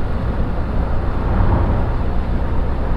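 A truck passes by in the other direction.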